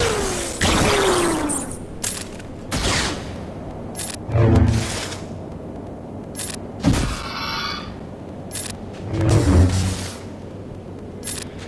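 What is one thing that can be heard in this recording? Lightsabers hum and clash in a fight.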